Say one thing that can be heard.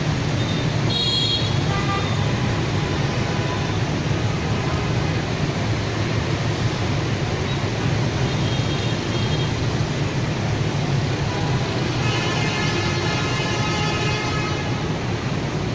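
Vehicle horns honk now and then.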